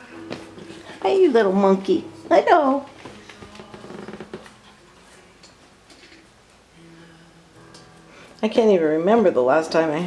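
A puppy whines in high, wavering cries close by.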